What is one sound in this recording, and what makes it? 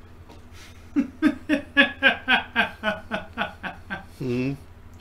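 A man laughs loudly in rapid bursts close to a microphone.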